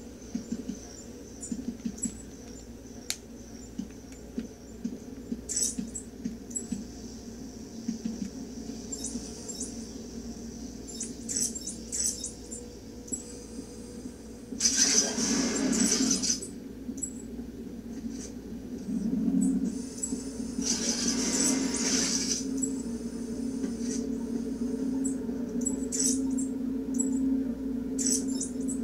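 Video game sound effects and music play from a television speaker.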